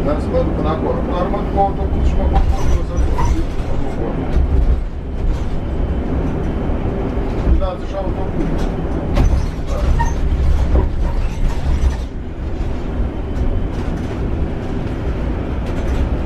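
A bus engine rumbles steadily from inside while driving.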